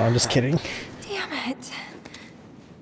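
A young woman groans in pain close by.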